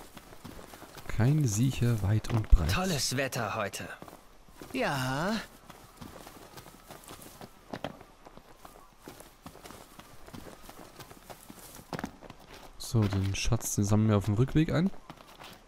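Footsteps run quickly over grass and rock.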